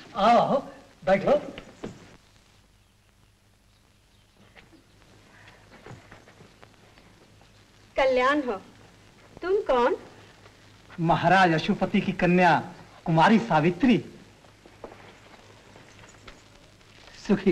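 A woman speaks with emotion, close by.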